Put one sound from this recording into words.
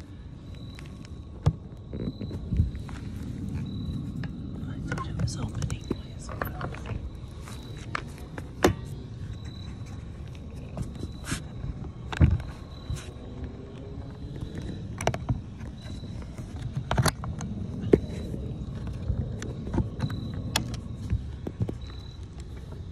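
A phone rubs and knocks against a metal-edged case.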